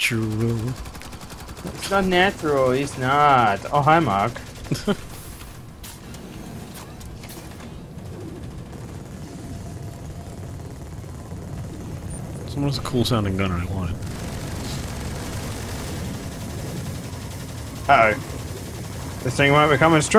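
Energy guns fire with rapid crackling zaps.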